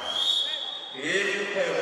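A man calls out loudly in an echoing hall.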